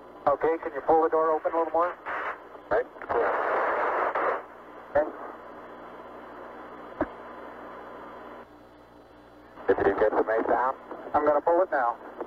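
A man speaks calmly over a crackly, narrow-sounding radio link.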